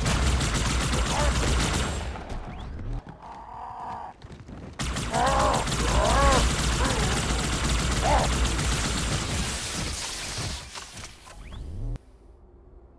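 Energy guns fire in rapid, loud bursts.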